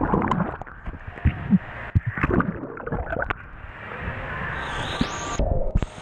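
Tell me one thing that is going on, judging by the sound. Water splashes and gurgles close by.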